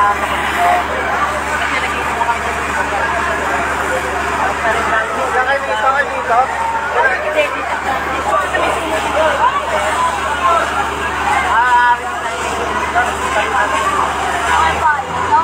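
A crowd of people talks and calls out excitedly nearby, outdoors.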